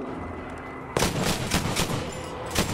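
An explosion bursts close by.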